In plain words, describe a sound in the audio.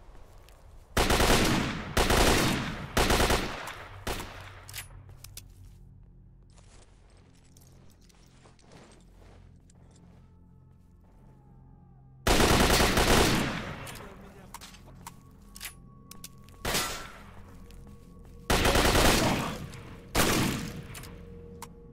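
A shotgun fires loud, booming blasts, one after another.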